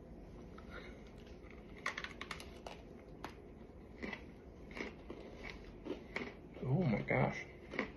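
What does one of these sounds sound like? A man crunches a cookie while chewing.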